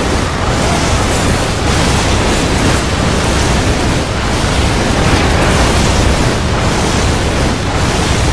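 Bursts of fire roar up from the ground.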